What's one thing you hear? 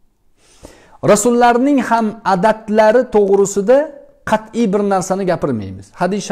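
A middle-aged man speaks calmly and clearly into a nearby microphone.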